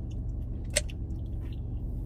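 A young woman slurps a drink through a straw.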